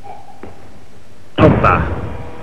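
A heavy barbell crashes down onto the platform.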